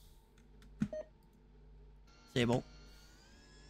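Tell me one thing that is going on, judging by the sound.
An electronic terminal beeps and chimes.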